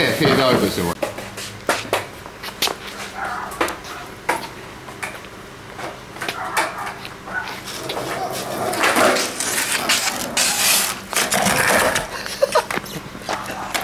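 A skateboard clacks against the ground.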